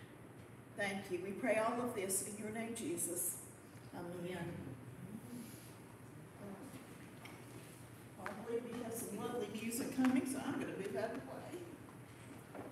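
A middle-aged woman speaks calmly nearby in a reverberant room.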